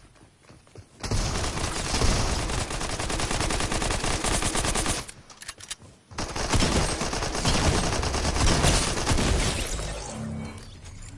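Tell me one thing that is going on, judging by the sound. A gun fires in rapid bursts at close range.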